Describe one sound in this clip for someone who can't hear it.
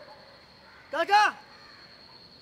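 A young man calls out loudly nearby.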